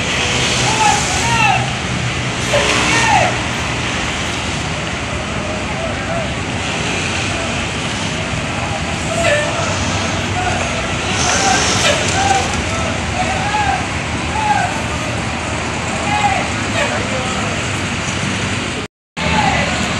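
Bus engines idle with a steady low rumble.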